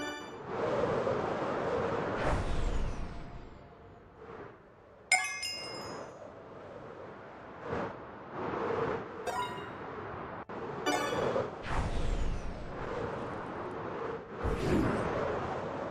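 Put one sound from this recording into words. Wind rushes loudly in surging gusts.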